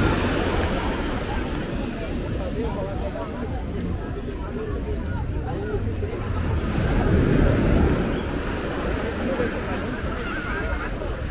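Small waves wash gently onto the sand.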